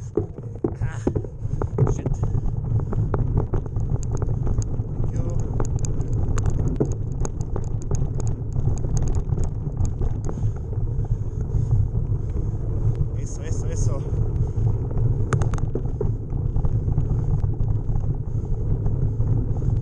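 Bicycle tyres rumble and crunch over a rough dirt trail.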